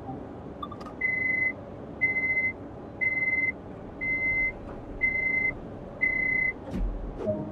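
A warning buzzer in a train cab beeps steadily, once each second.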